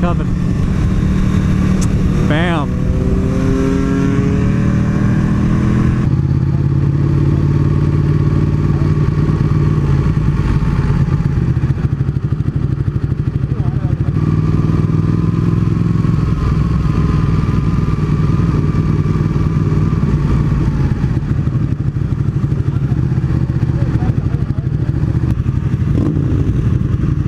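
A sport bike engine hums while the motorcycle cruises along the road.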